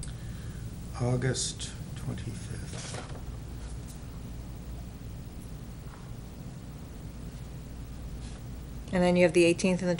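An adult speaks briefly through a microphone, with pauses.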